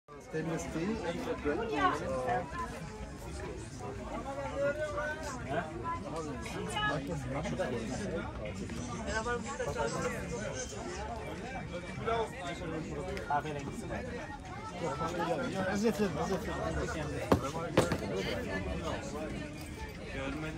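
A crowd of shoppers chatters nearby in a busy outdoor market.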